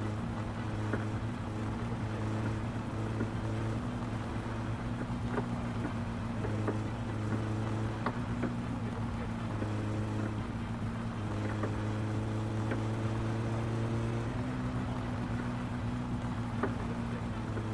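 Small knocks and bumps sound from the car's body over rough ground.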